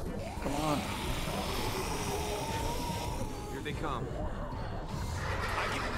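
Zombies groan and snarl.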